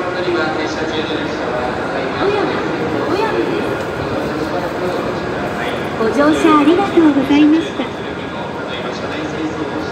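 Footsteps tap on a hard floor nearby.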